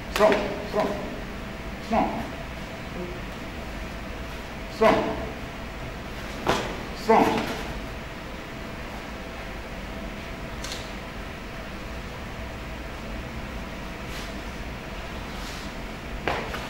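A man speaks nearby in short, loud bursts.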